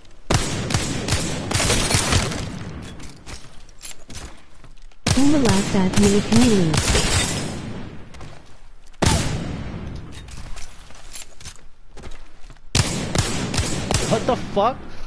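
Rapid gunfire rings out in short bursts.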